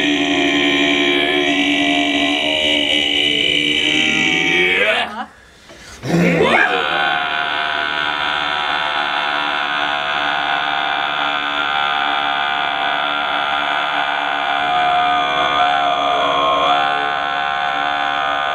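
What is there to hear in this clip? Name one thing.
A young man sings along, close by.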